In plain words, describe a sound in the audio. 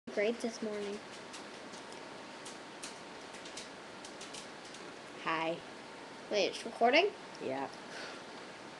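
A young girl talks close by, in short bursts.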